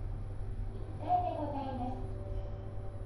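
An elevator chime sounds on arrival.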